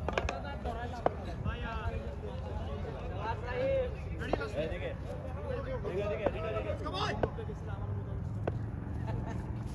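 Men call out and chatter across an open outdoor court.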